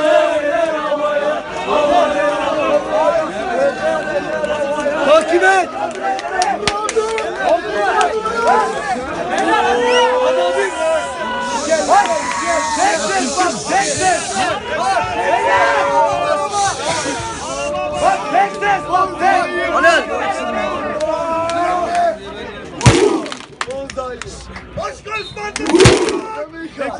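A large crowd of young men chants loudly together outdoors.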